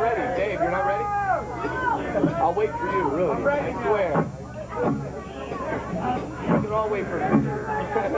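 A drum kit is played loudly.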